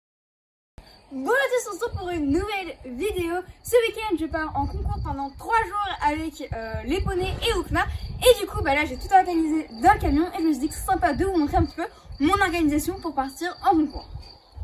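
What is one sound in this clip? A girl talks with animation close by.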